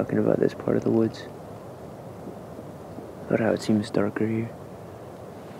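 A boy speaks quietly, close by.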